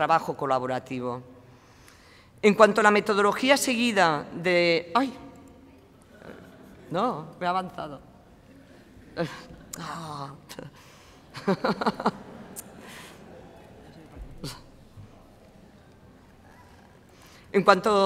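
A middle-aged woman speaks into a microphone, calmly and with pauses.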